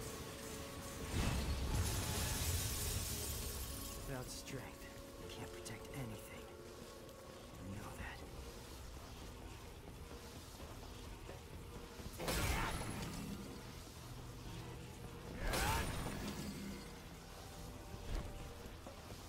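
Blades slash and clang in quick bursts.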